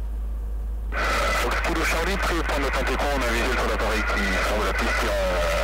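Another small plane's propeller engine buzzes loudly close by.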